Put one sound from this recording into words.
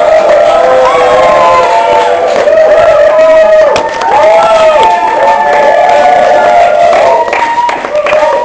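A crowd of young people sings loudly close by.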